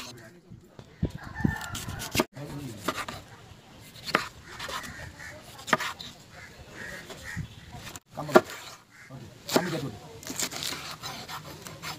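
A knife chops through vegetables on a wooden board.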